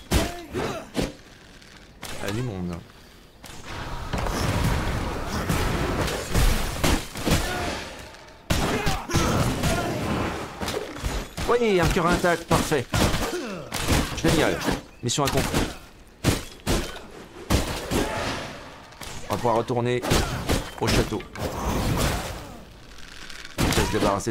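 Swords clash and strike in quick bursts of combat.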